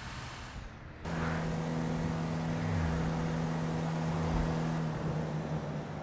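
A car engine hums steadily at idle.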